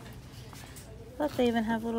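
A hand brushes against soft plush toys.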